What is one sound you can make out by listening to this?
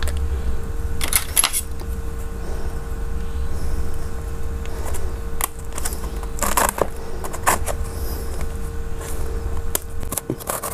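A cardboard box rustles and scrapes as hands handle it up close.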